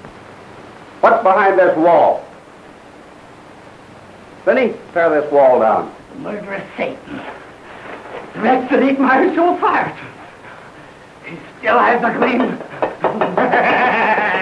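A man speaks with animation, heard through an old, muffled film soundtrack.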